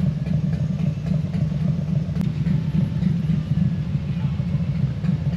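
A motorcycle engine idles with a deep, steady, throbbing rumble close by.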